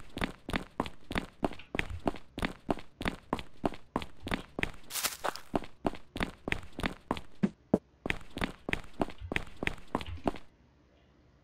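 Footsteps run quickly and evenly over hard ground.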